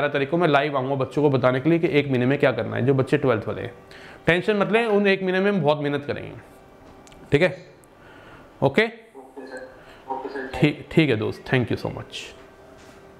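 A man speaks calmly and clearly into a close microphone, as if teaching.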